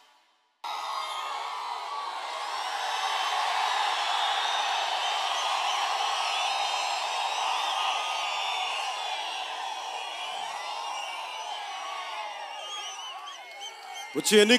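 A crowd cheers and shouts.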